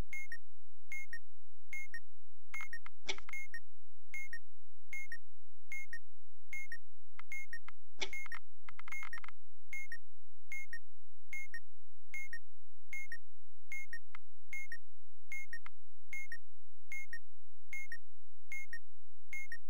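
An electronic timer ticks with short, steady beeps.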